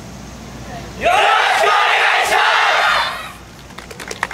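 A group of young dancers shout.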